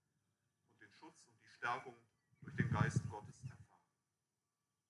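A man speaks briefly through a loudspeaker outdoors.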